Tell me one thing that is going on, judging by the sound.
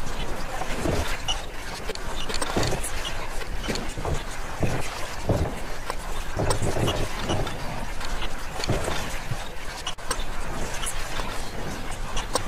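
Stone discs click and scrape as they slide into new slots.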